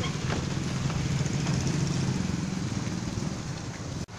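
Motorcycles ride by.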